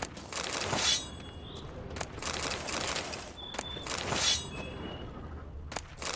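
A sword slashes and strikes flesh.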